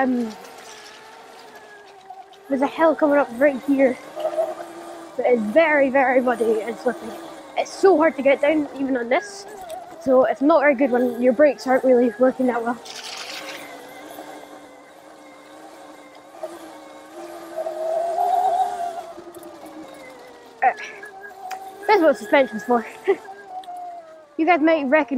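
An electric bike motor whines, rising and falling in pitch.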